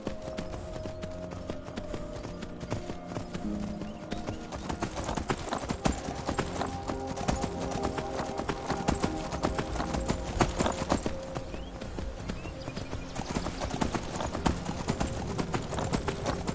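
A horse's hooves clop steadily on a rocky trail.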